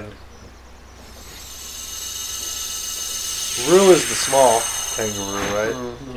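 A magical chime shimmers and swells.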